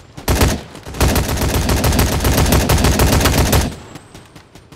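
An assault rifle fires rapid automatic bursts.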